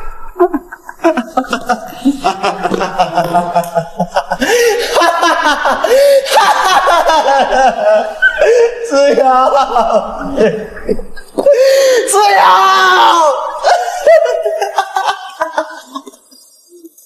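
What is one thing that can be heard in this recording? A young man wails and sobs loudly, close by.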